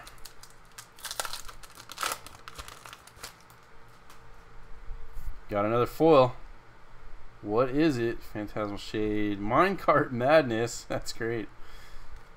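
Playing cards rustle and tap as hands handle them.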